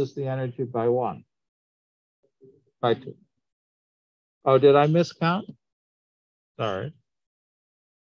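A man speaks calmly in short phrases through a microphone on an online call.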